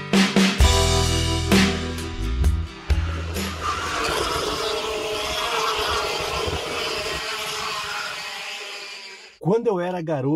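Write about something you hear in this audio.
Kart engines whine loudly as karts race past.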